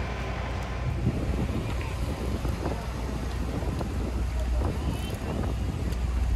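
Rain patters on a wet street.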